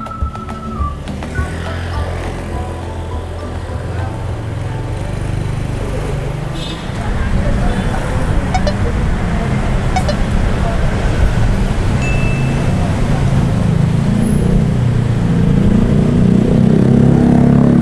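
Motorbike engines rumble along a street.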